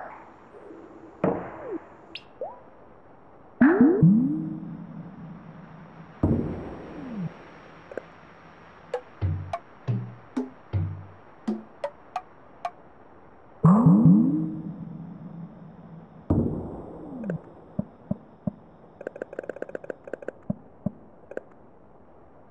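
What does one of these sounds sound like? Soft electronic tones chime and swoop as game tiles light up.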